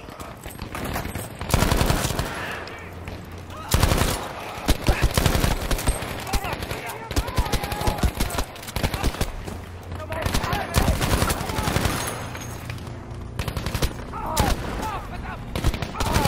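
Rapid gunfire rattles in bursts nearby.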